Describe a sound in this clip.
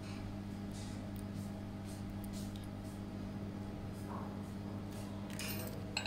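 A hex key scrapes and clicks against a metal screw.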